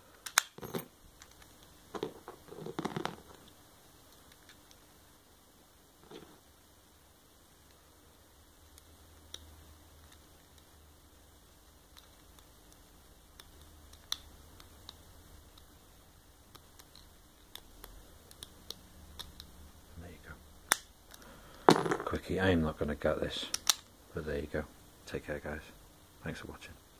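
Metal lock parts click and rattle in a person's hands.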